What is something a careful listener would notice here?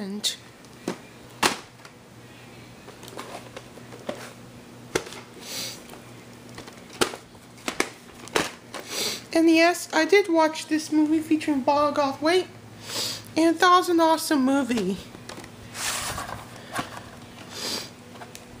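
Plastic video tape cases click and knock as hands handle them.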